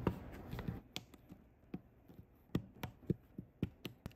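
Plastic bricks snap together with sharp clicks.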